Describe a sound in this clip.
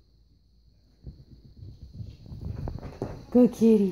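A cat jumps and lands with a soft thump on a couch.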